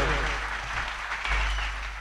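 An electric guitar strums.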